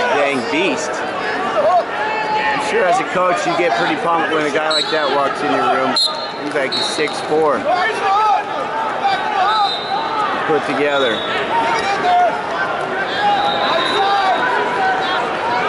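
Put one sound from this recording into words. A large crowd chatters and cheers in a big echoing arena.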